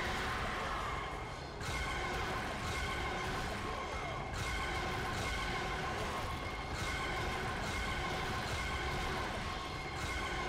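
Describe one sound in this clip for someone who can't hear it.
Blades slash and strike in a fierce fight.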